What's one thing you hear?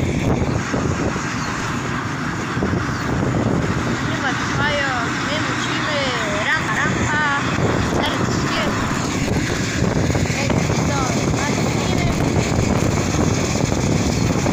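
A diesel tractor engine rumbles while driving along.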